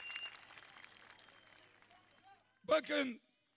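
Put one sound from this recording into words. A large crowd cheers outdoors and fades.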